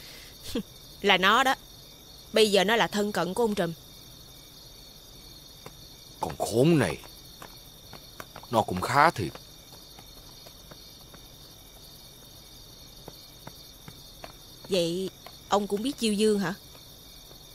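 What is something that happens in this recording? A young woman speaks sharply nearby.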